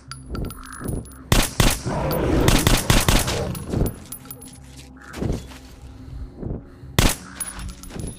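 A rifle fires loud single shots.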